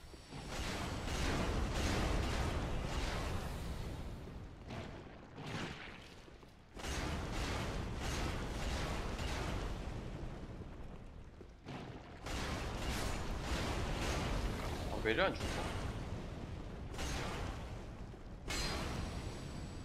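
A sword strikes with heavy metallic blows.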